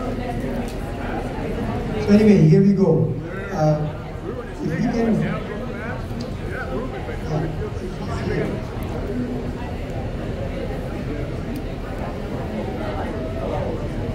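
A crowd of people chatter in a busy, echoing room.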